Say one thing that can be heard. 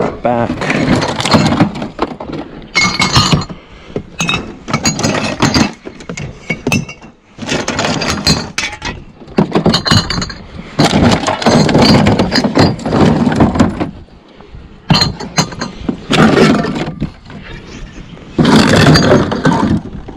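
Glass bottles and plastic containers clink and rattle as they are sorted by hand.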